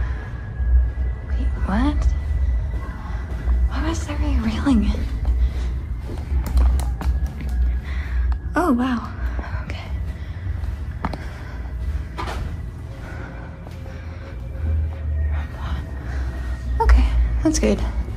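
Footsteps thud softly on carpet.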